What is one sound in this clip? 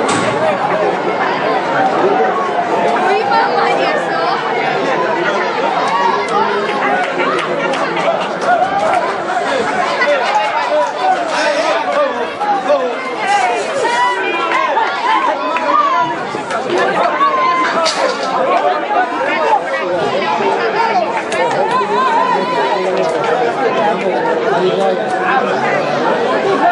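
A crowd of people shout and chatter close by.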